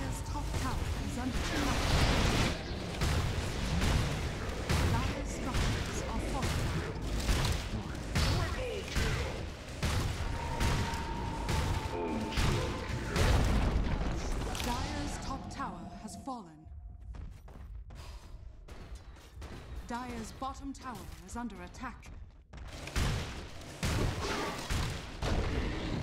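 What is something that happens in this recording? Fantasy battle sound effects crash and thud in quick bursts.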